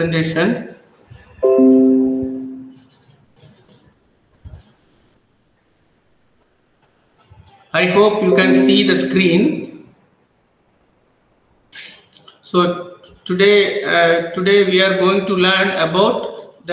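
A man speaks calmly through an online call.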